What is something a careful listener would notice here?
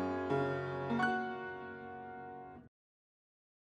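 Piano chords ring out and fade away.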